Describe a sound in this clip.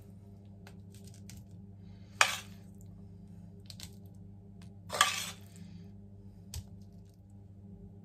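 A metal spoon scrapes and taps against a metal pot.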